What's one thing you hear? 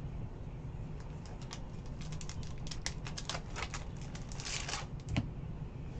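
A foil wrapper crinkles and tears as a pack is ripped open.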